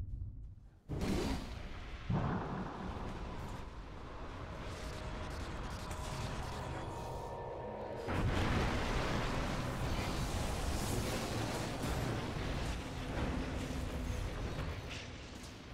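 Magic spells crackle and blast in a chaotic battle.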